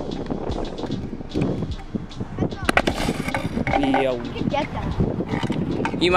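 Kick scooter wheels roll and rumble on concrete.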